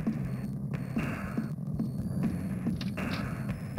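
Footsteps run across wooden floorboards.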